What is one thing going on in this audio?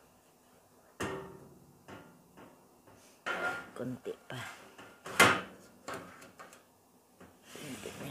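A metal pan scrapes and clatters on an oven rack.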